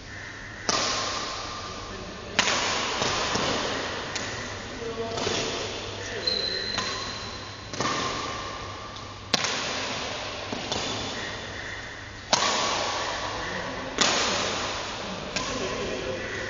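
Shuttlecocks are struck with rackets, each hit ringing out in a large echoing hall.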